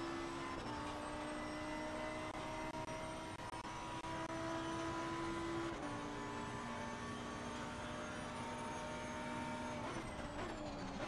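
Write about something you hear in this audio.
A racing car engine roars at high revs and shifts up through the gears.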